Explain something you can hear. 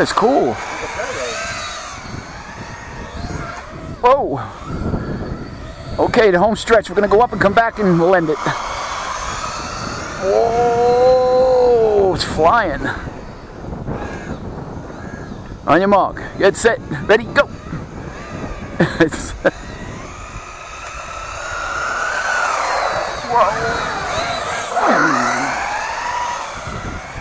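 A small remote-control car's electric motor whines, rising and falling in pitch as it speeds up and slows down.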